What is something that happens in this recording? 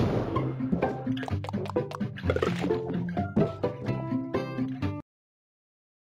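Balloons pop in quick succession.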